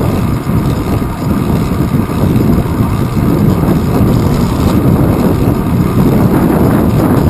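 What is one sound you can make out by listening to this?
A bicycle rolls over pavement with a steady whir.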